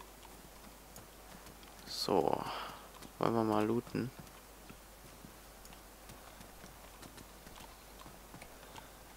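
Footsteps tap on hard concrete at a steady walking pace.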